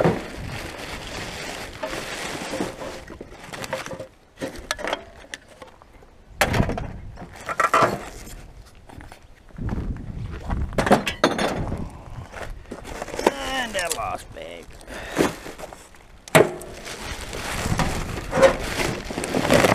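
Plastic bottles and cans clatter into a wheelie bin.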